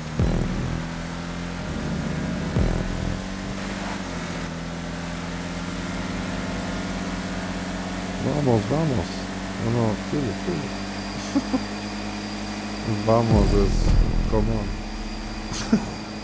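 A car engine drones steadily at speed.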